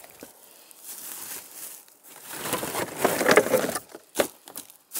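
Clothing rustles and scrapes against a microphone.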